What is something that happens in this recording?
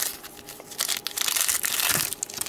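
A foil card pack crinkles and tears open close by.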